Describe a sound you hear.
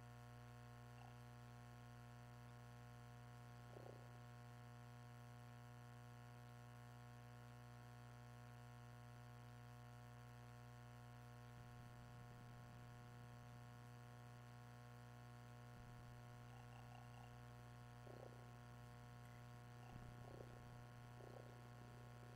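Soft electronic menu blips sound now and then.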